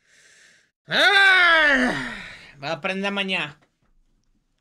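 A man groans and exclaims loudly, close to a microphone.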